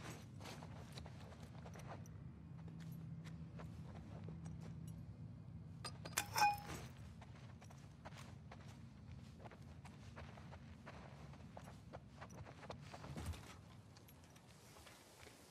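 Soft footsteps pad across a carpeted floor.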